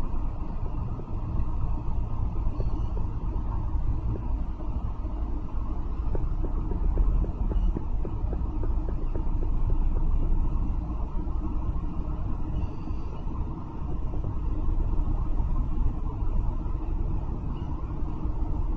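Tyres roll along the road with a low hiss and occasional rattles.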